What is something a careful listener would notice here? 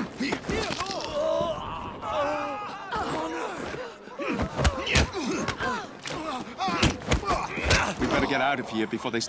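Punches thud against bodies in a brawl.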